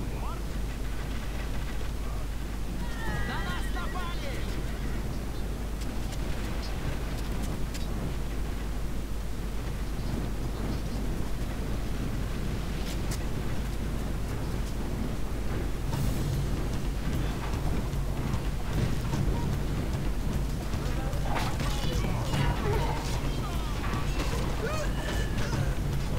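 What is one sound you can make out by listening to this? A large army marches with a low, steady rumble that grows louder.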